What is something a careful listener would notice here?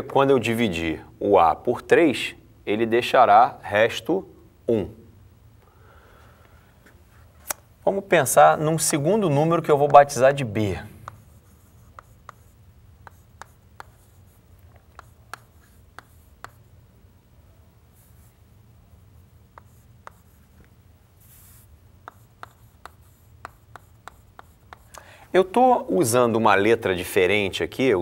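A man speaks calmly to a class, close by and slightly echoing.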